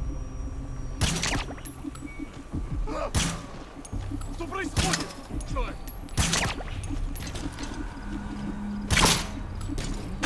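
A suppressed gun fires single shots now and then.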